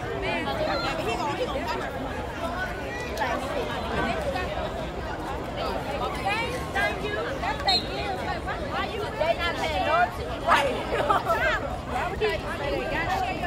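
A crowd of spectators cheers and chatters outdoors.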